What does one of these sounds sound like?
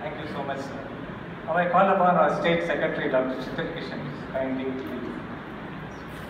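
An elderly man speaks into a microphone over loudspeakers in an echoing hall.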